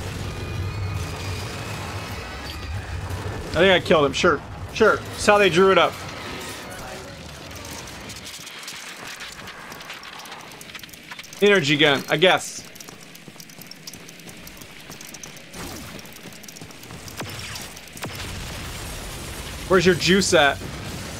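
Gunfire and explosions rumble from a video game.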